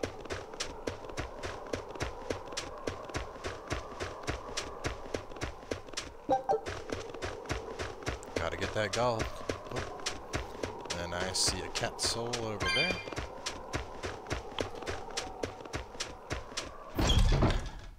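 Quick footsteps crunch through snow at a run.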